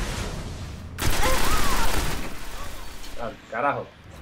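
A rapid-fire gun rattles loudly.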